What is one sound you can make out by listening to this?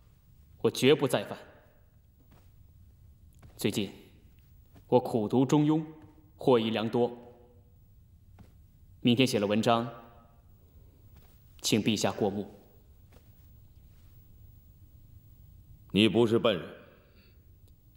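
A man speaks slowly and gravely in short phrases with long pauses, close by.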